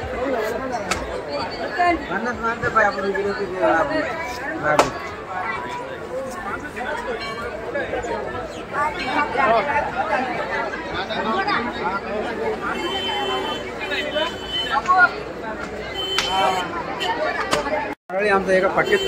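A crowd of men and women chatter nearby.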